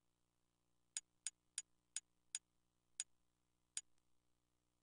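Short, sharp electronic clicks tick several times in quick succession.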